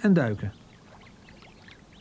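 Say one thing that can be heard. Water splashes as a bird dives.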